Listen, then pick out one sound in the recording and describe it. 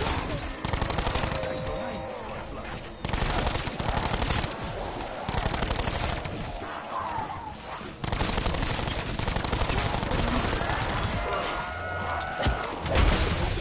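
Zombies growl and moan.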